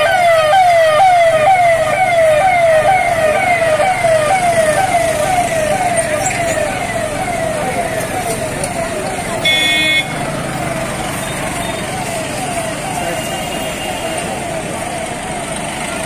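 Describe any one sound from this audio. A police siren wails in quick repeating whoops, slowly fading.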